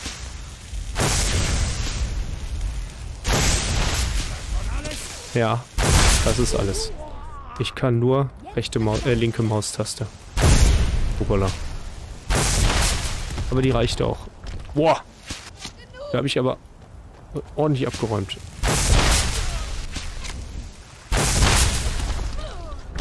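A magic spell crackles and whooshes in loud bursts.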